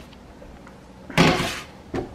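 A plastic dish clatters onto a microwave's glass turntable.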